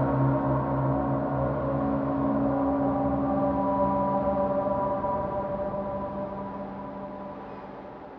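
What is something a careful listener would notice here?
A ship's engine hums steadily, then slowly fades.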